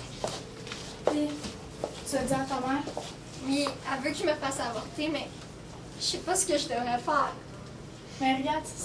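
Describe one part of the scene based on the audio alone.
A second young woman talks calmly, close by.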